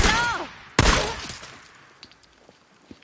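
A gunshot cracks loudly and echoes.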